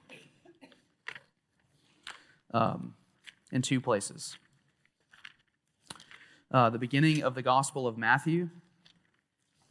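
Pages of a book rustle as a man turns them.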